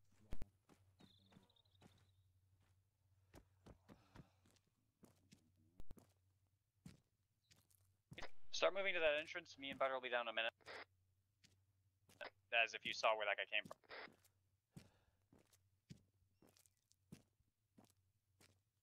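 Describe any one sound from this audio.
Footsteps tap on hard ground at a walking pace.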